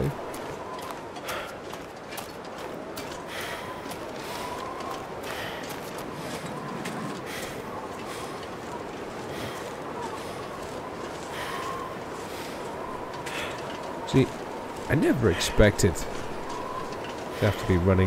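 Footsteps crunch through snow at a steady walking pace.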